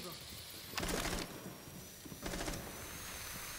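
Gunfire rings out in short, sharp bursts.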